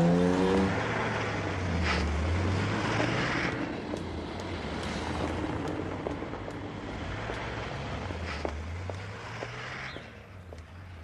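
A car engine hums as a car drives slowly over cobblestones.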